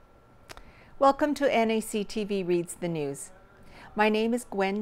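A middle-aged woman speaks calmly into a close microphone, reading out.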